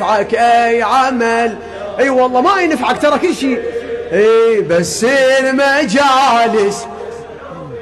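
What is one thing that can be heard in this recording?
A man chants loudly through a loudspeaker.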